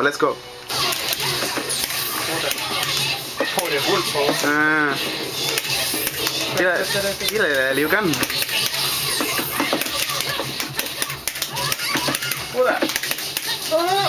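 Fast punches, hits and blasts from a fighting game play loudly from a television.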